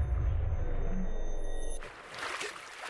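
Water rumbles and bubbles underwater.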